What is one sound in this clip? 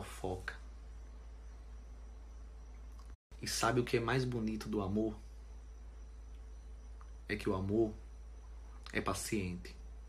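A young man talks casually and close up, in short bursts.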